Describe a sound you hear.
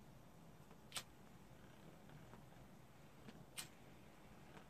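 A lighter clicks and flicks.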